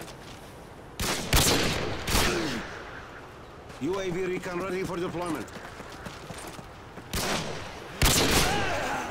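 A rifle fires loud, sharp shots that echo briefly.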